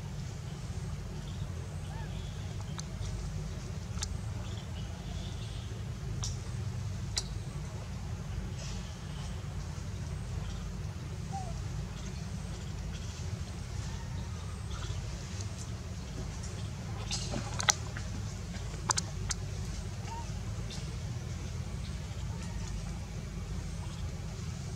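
Young monkeys scuffle and rustle on stone close by.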